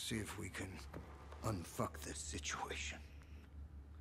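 An older man speaks in a low, gruff voice.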